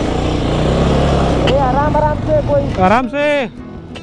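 Another motorcycle passes close by.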